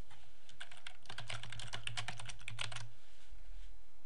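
Keys click rapidly on a computer keyboard.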